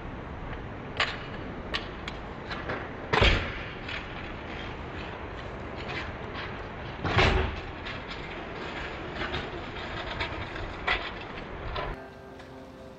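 A skateboard clacks hard against the ground.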